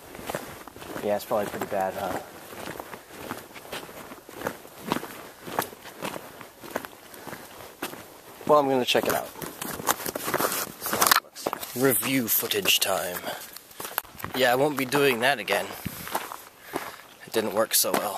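A man talks close up, with animation.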